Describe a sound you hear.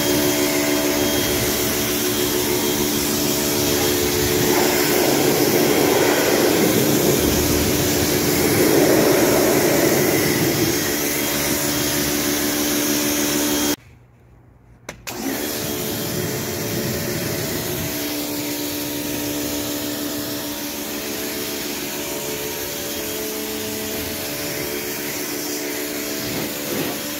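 A pressure washer motor hums steadily and loudly.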